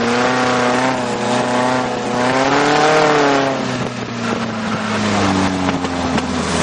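A buggy engine roars loudly close by, its pitch rising and falling.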